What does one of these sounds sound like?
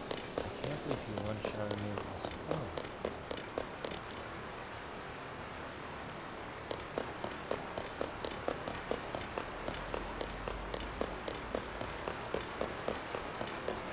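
Footsteps thud and creak on wooden planks.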